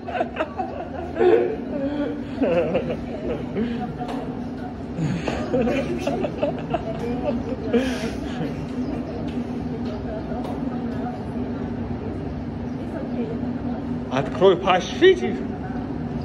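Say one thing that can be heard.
A young woman coughs and splutters nearby.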